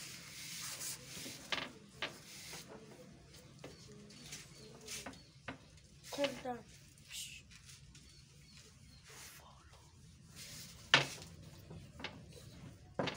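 A rolling pin rolls and thumps on a floured board.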